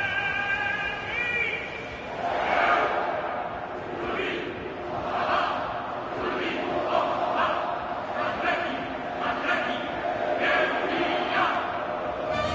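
A large crowd sings and chants loudly in a big echoing stadium.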